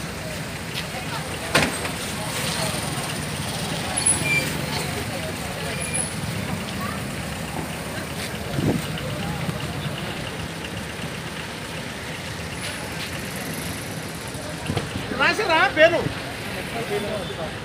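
Motorcycles drive past on a street outdoors.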